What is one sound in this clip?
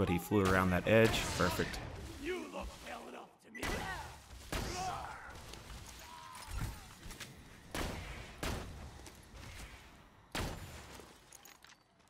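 A sniper rifle fires sharp, loud shots.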